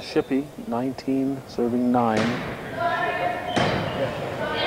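A volleyball is struck with a smack.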